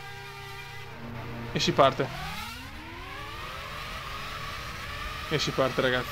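A racing car engine roars and rises in pitch as the car speeds up.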